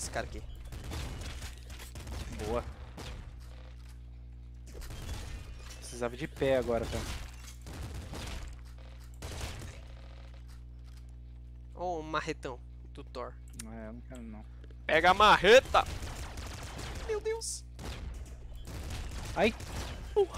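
Small guns fire in quick bursts in a video game.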